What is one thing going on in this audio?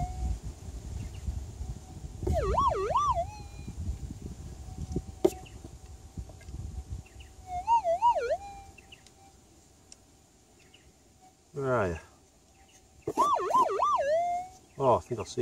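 A metal detector hums steadily and warbles up and down in bursts.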